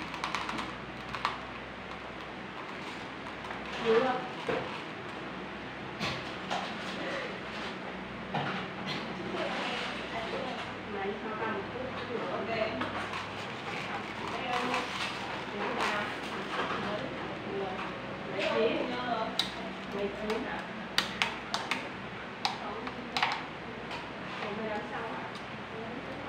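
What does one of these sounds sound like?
Hands handle cut plastic bottle pieces, which crinkle and click.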